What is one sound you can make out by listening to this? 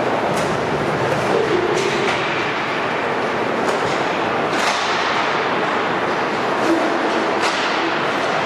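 Skate wheels roll and scrape across the floor.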